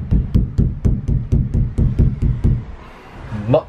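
A hand knocks repeatedly on a hollow metal roof.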